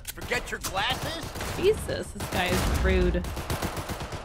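A young woman talks with animation into a microphone.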